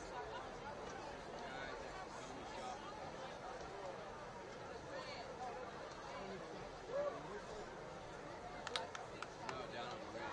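A crowd of stadium spectators chatters and murmurs steadily outdoors.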